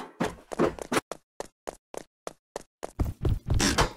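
Quick footsteps patter across a floor.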